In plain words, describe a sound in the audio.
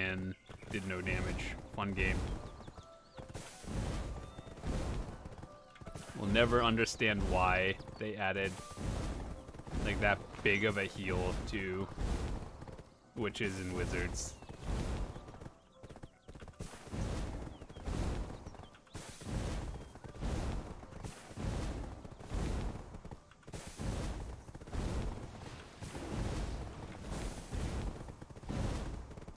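Large wings flap steadily in rhythmic beats.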